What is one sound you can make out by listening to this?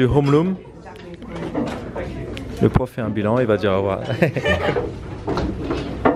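A man speaks to a class.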